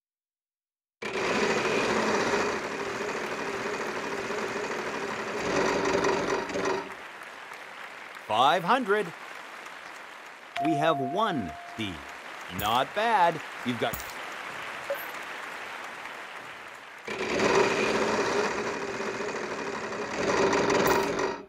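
A prize wheel spins with rapid ticking.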